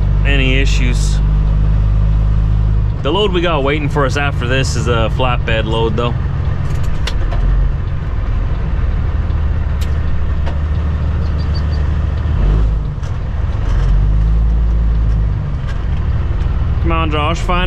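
A truck's diesel engine rumbles low and steady.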